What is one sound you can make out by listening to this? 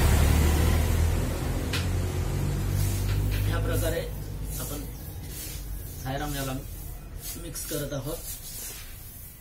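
Seeds rustle softly on paper as hands stir them.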